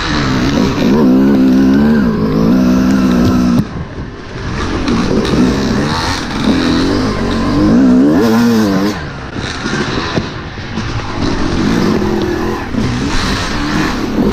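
A two-stroke dirt bike engine revs up and down.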